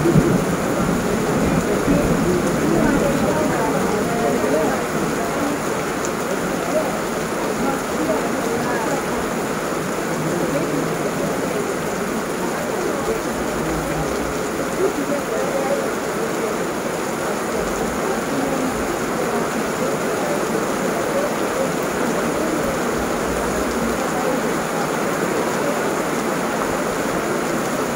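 Heavy rain pours steadily outdoors, hissing on the ground and leaves.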